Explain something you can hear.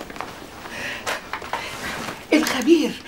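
A bag rustles and knocks as it is set down.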